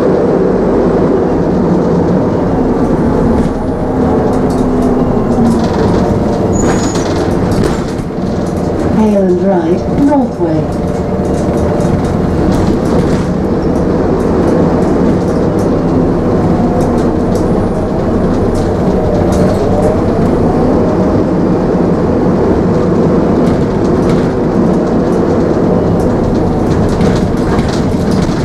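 A bus rattles and creaks over bumps.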